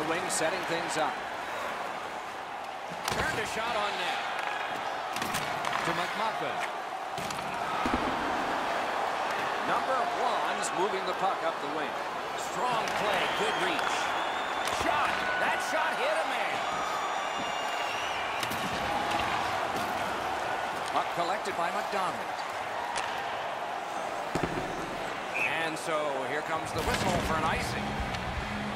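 A stick slaps a puck with a sharp crack.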